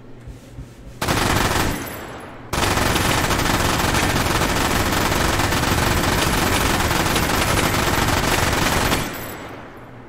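A machine gun fires long, rapid bursts.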